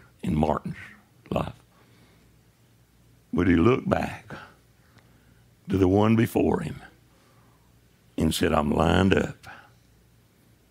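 An older man preaches with animation into a microphone, in short bursts with pauses.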